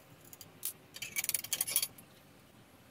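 A metal tool is set down on a tiled floor with a clatter.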